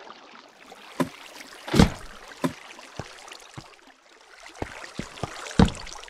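Footsteps thud on hard stone.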